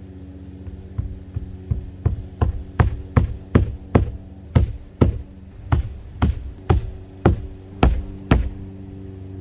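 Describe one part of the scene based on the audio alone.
A hammer knocks steadily on a roof edge.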